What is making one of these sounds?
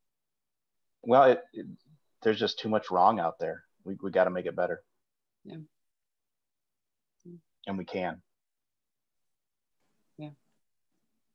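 A man talks calmly over an online call, with pauses.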